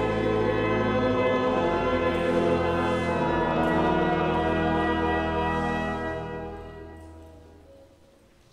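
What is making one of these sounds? A choir sings in a large echoing hall and fades out.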